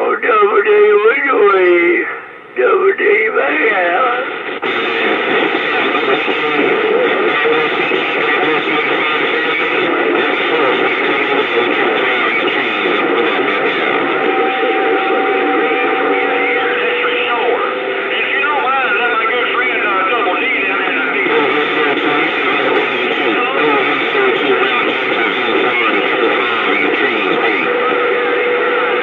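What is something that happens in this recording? Static hisses and warbles steadily from a radio loudspeaker.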